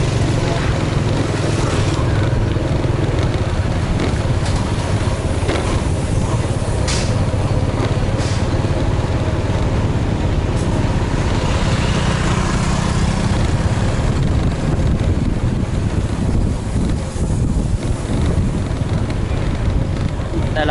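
A motorbike engine hums steadily close by.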